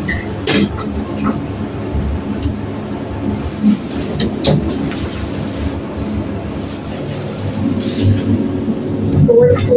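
An elevator hums steadily as it descends.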